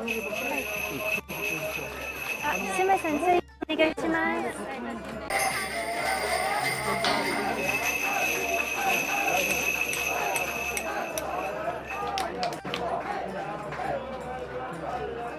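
A crowd of men and women chatters all around at close range.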